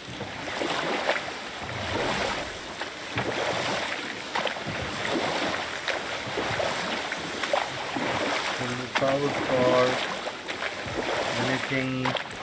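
Oars splash and swish through water.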